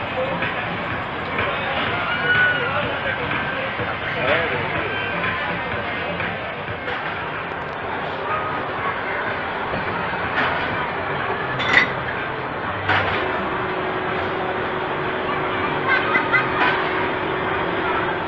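Roller coaster cars rumble and rattle along the track.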